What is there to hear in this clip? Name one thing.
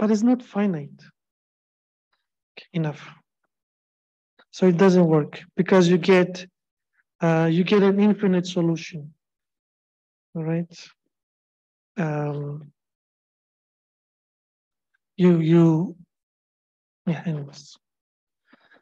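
A man lectures calmly through a computer microphone, in short phrases with pauses.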